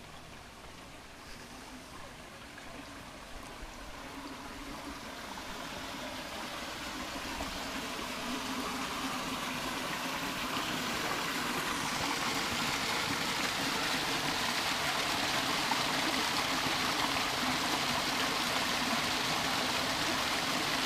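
Water gushes and splashes close by, growing louder on approach.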